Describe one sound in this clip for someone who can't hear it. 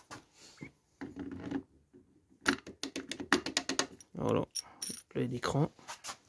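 Metal engine parts clink softly as they are fitted together by hand.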